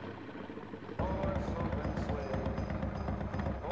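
Engines idle with a low rumble close by.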